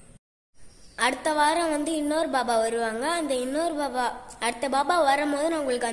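A young girl sings close by.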